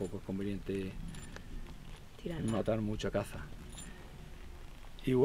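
A middle-aged man speaks calmly, close by, outdoors.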